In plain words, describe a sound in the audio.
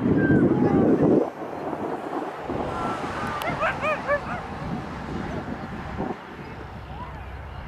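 Adults in a small crowd talk and call out outdoors nearby.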